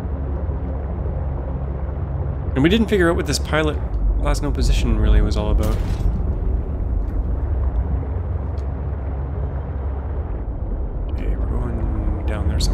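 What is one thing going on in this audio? Deep water rumbles low and steadily all around.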